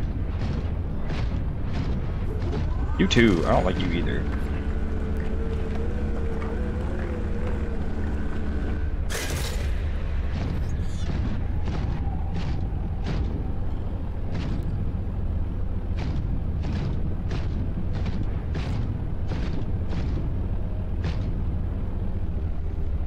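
A heavy diving machine hums with a low, steady rumble.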